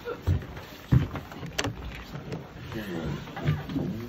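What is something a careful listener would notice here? A wooden door clunks open.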